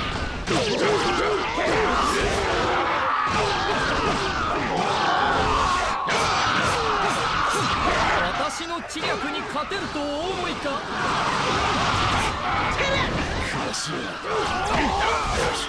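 Blades slash and strike rapidly in a loud battle.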